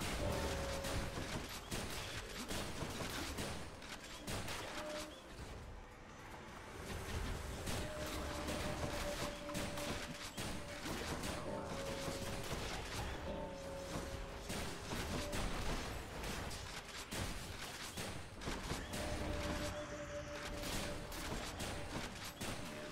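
Video game music plays steadily with held notes.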